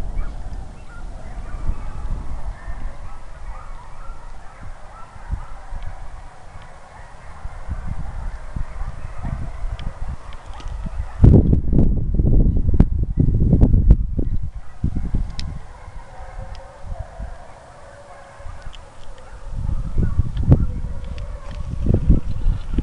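Wind gusts across an open field outdoors.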